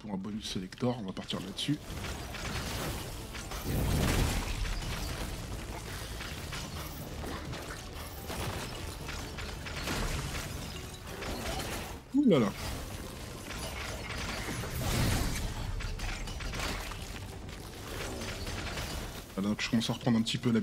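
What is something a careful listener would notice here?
Video game spells whoosh and burst during a fight.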